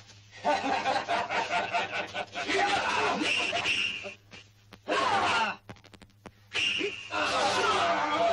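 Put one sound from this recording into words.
A man shouts loudly and frantically nearby.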